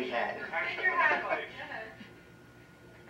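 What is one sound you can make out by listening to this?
A woman talks close by.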